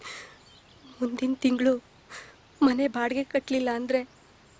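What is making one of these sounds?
A woman speaks calmly and closely.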